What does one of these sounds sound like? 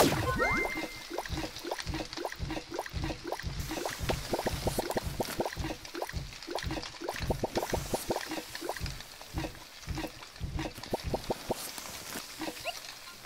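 Ingredients thump and clatter as they are tossed in a pan in a quick rhythm.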